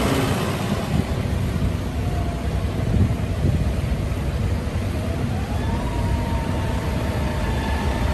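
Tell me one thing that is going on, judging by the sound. Tractor tyres crunch slowly over sandy ground.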